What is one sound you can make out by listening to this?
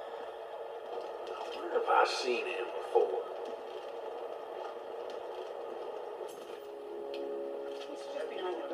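Video game sounds play quietly from a television speaker.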